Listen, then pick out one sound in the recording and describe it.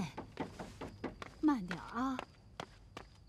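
A middle-aged woman speaks in a troubled voice, close by.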